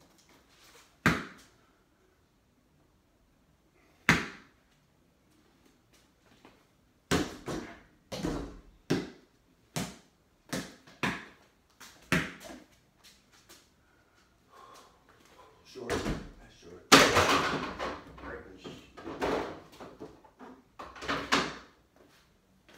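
A ball thumps and bounces on a hard floor in an echoing room.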